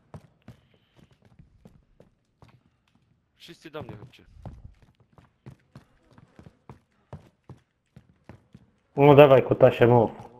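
Footsteps thud softly on wooden floors.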